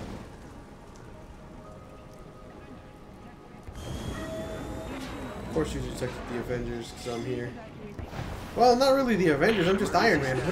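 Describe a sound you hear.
Jet thrusters roar and hiss in flight.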